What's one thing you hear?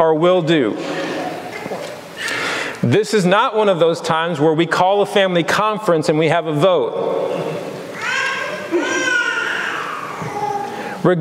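A man preaches with animation over a microphone in a large echoing hall.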